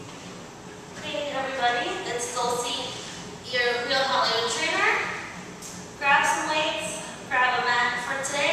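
A young woman talks with animation, close by.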